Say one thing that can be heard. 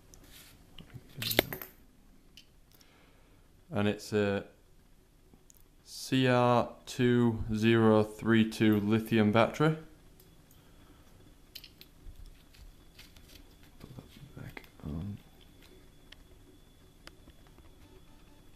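Hands handle a plastic scope with soft taps and rubbing.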